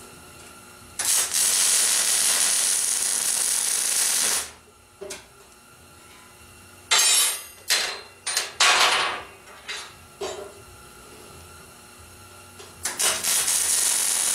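An electric welder crackles and hisses steadily.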